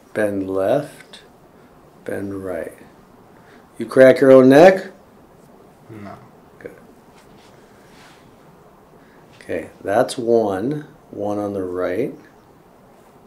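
A man speaks calmly nearby in short bursts.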